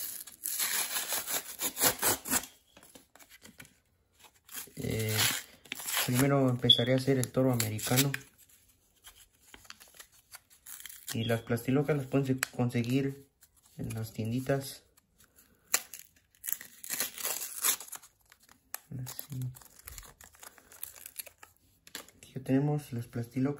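Paper packets rustle and crinkle close by.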